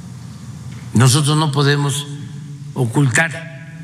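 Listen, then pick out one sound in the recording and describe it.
An elderly man speaks through a microphone in a calm, measured voice.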